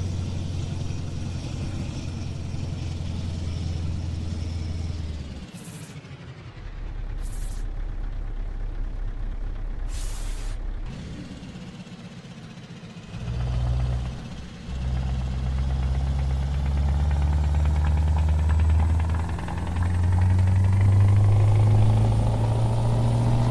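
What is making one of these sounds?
A truck engine rumbles low and steady, rising and falling as it changes speed.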